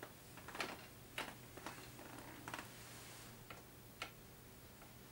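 Metal-bodied guitars knock and clatter as they are handled.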